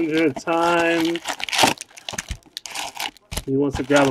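A cardboard box lid is pulled open.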